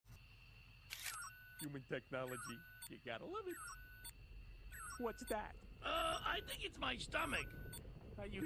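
An electronic monitor beeps and chirps.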